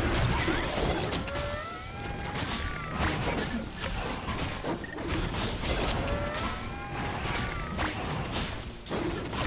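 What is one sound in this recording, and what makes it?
Magic blasts zap and crackle in quick bursts.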